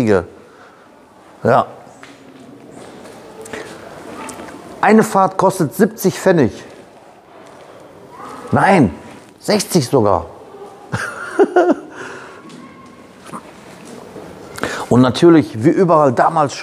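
A man talks close by with animation, in a large echoing hall.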